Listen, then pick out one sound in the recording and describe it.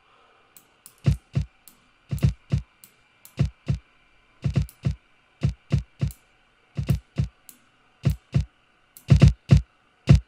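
A punchy electronic drum beat plays in a steady rhythm.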